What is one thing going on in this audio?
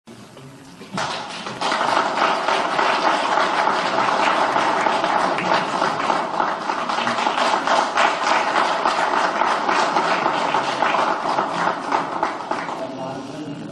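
A crowd of men cheers.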